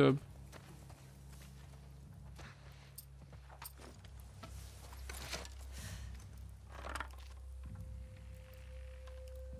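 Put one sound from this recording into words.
A man talks quietly into a close microphone.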